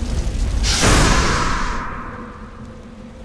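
A fire spell bursts with a loud roaring whoosh and fades.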